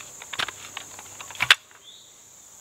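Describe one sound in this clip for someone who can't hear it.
A small trowel scrapes and crunches into dry soil.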